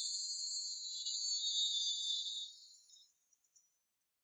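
Loud, high-pitched music blares from a boombox, then fades away.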